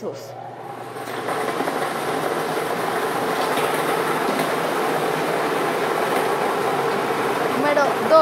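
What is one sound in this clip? Lottery ball machines whir steadily, with balls rattling inside.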